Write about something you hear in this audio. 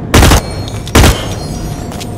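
A gun fires loud, sharp shots.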